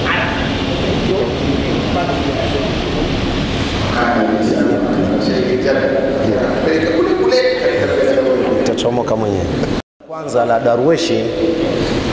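A man speaks with animation into a microphone.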